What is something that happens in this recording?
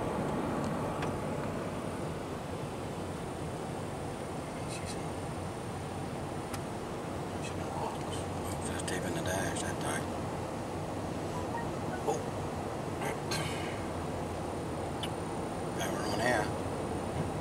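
Sleet ticks against a car windscreen.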